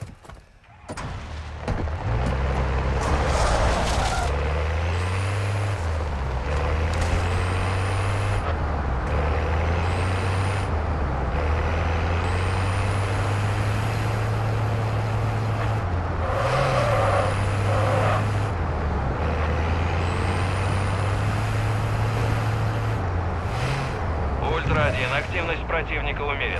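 A heavy truck's engine roars and shifts gears as it drives.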